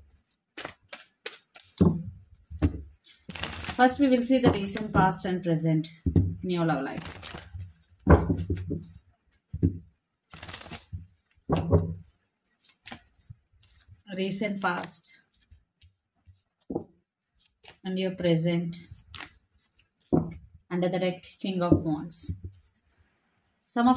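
Playing cards riffle and flick as they are shuffled by hand.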